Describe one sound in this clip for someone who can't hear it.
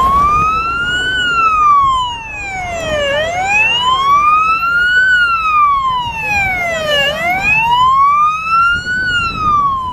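A heavy diesel fire engine rumbles as it drives over grass and approaches.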